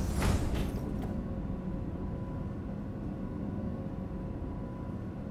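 An elevator hums steadily as it rides.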